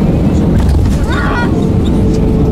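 Airplane wheels thud onto the runway.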